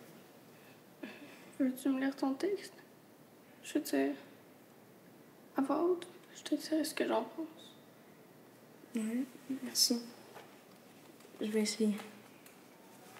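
A young girl speaks quietly and hesitantly nearby.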